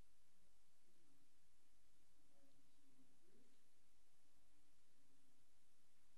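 A man speaks faintly into a microphone in a large room.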